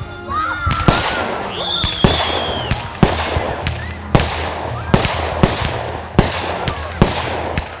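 Fireworks burst with loud, sharp bangs in quick succession.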